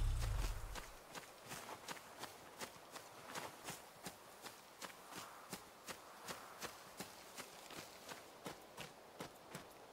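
Footsteps thud rapidly on dry ground.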